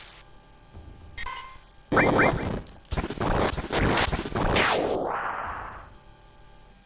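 Loud battle effects crash and whoosh in a video game.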